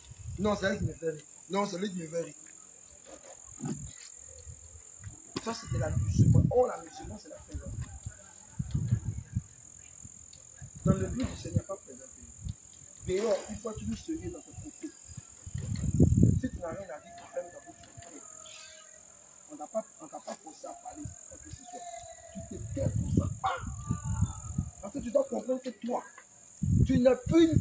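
A man speaks loudly and with animation outdoors.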